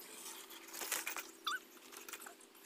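A bicycle clatters onto rock.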